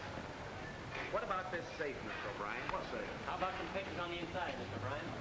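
Several men talk over one another nearby.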